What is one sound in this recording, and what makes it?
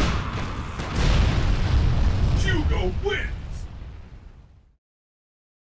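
A giant man roars in triumph.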